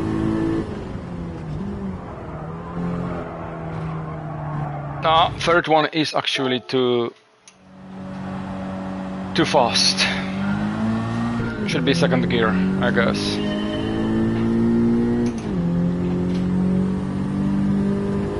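A racing car engine roars and revs, changing pitch as it speeds up and slows down.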